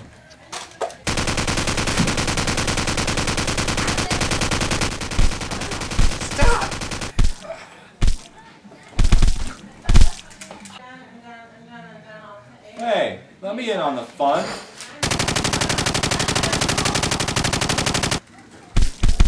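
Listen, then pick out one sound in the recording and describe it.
A toy gun fires a rapid burst of shots.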